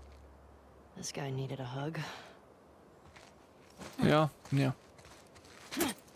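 A man speaks with animation into a close microphone, in short bursts.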